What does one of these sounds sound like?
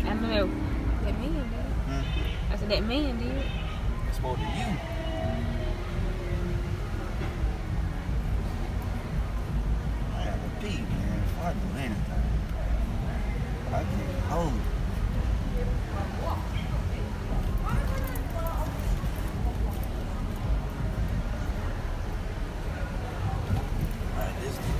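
A crowd of people chatters in the distance on a street.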